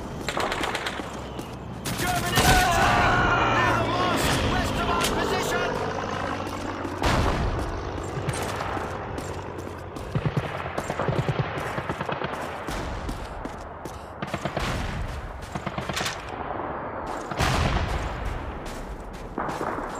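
Gunfire cracks repeatedly nearby.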